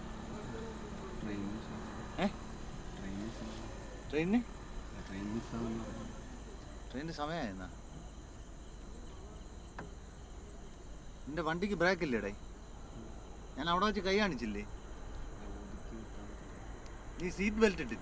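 A man speaks calmly from outside a car window, heard close by.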